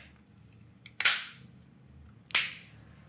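A plastic case clicks and snaps as hands handle it.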